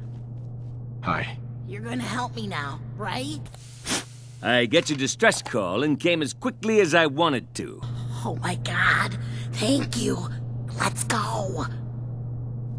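A man pleads anxiously.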